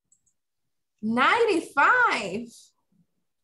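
A woman speaks clearly and calmly through an online call.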